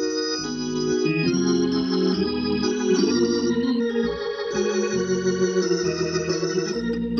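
An electric organ plays sustained chords and a melody.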